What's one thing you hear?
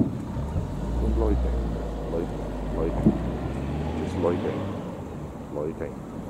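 Fireworks crackle faintly in the distance.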